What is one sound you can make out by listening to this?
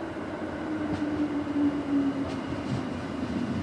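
Brakes squeal on an electric commuter train as it slows.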